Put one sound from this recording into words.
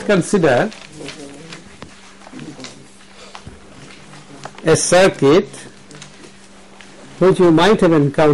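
A middle-aged man speaks calmly and clearly into a nearby microphone.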